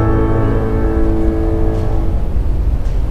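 A woman sings a sustained, wavering note close to a microphone.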